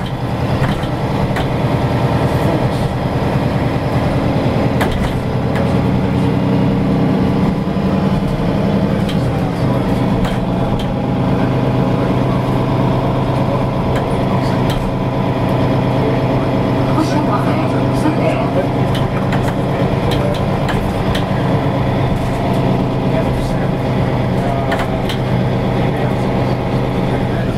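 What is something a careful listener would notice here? A bus engine hums steadily from inside the vehicle.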